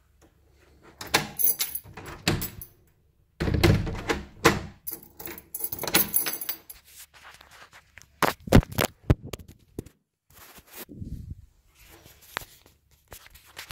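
Keys jingle and clink against a door handle.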